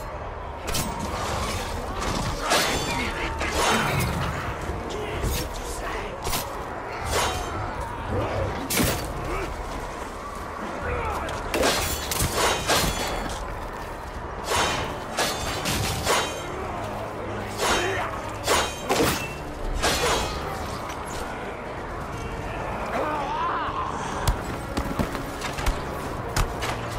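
Weapons clash and strike in a melee fight.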